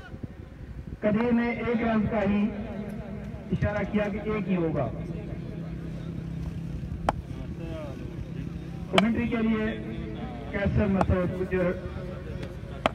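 A man talks loudly nearby, outdoors.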